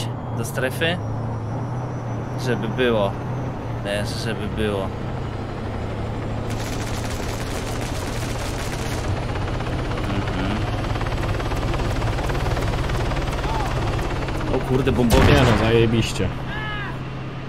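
A helicopter's rotor drones and thumps steadily.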